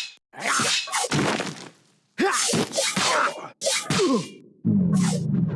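Swords clash and slash in quick, sharp strikes.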